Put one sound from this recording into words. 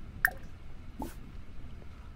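A short interface click sounds as a menu opens.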